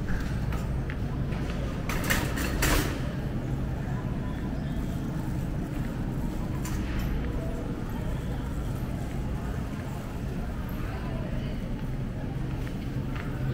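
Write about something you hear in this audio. A shopping cart rattles as it rolls over a smooth floor.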